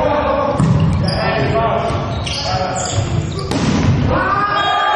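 A volleyball is struck with a hand in an echoing hall.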